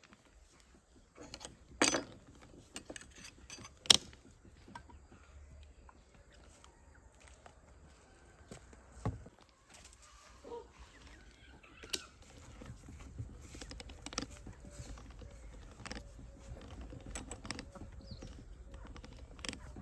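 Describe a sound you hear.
A hand tool crimps a metal lid onto a glass jar with squeaks and clicks.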